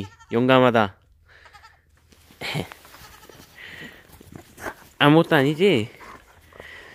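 A goat bleats loudly nearby.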